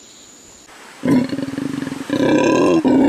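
A howler monkey roars.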